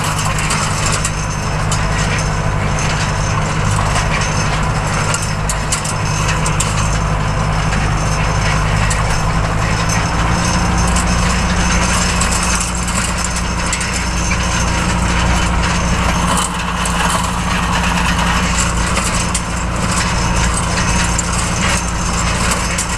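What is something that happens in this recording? A tractor engine chugs loudly and steadily close by.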